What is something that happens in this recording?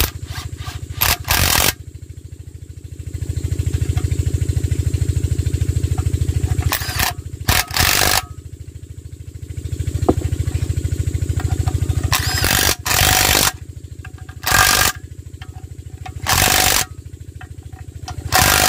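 An impact wrench rattles loudly in short bursts.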